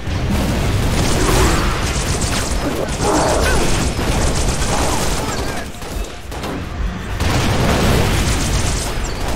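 Video game needler shots fire in rapid bursts.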